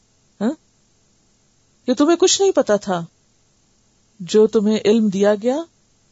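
A woman speaks calmly and closely into a microphone, in short phrases with pauses.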